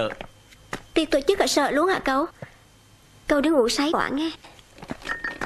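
A young woman speaks softly nearby.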